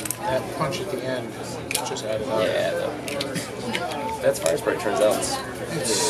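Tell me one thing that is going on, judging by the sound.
Playing cards slap and slide on a table.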